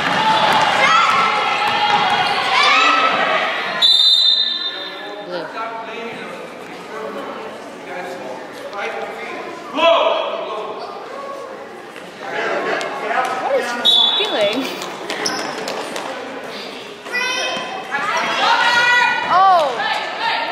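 Young girls shout and call out across the court.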